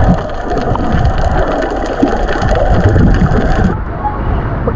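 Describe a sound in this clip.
Water churns and bubbles in a muffled way underwater.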